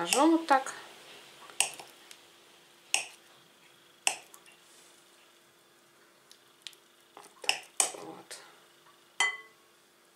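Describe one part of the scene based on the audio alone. A knife clicks and taps against a glass bowl.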